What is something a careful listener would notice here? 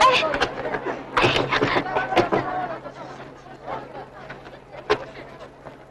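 A door rattles as a woman pulls at it.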